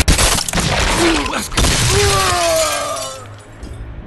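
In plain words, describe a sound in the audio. A man shouts out loudly.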